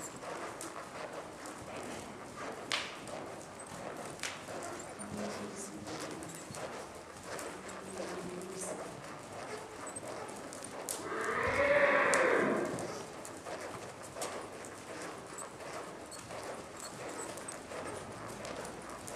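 A horse's hooves thud softly on sand as it trots.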